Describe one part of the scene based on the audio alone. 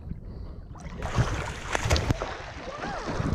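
A splash bursts up loudly from the water.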